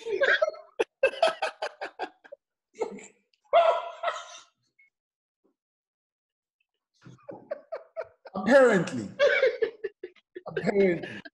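Several men laugh loudly over an online call.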